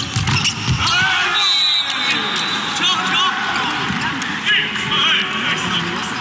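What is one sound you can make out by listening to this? A crowd cheers and whistles in a large echoing hall.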